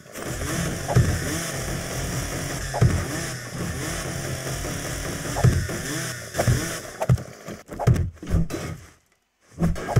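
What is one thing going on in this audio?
Stone blocks knock into place one after another.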